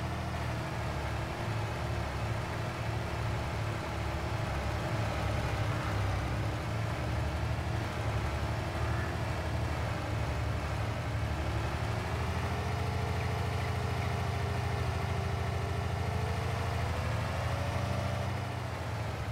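A heavy truck engine drones steadily, rising in pitch as the truck speeds up.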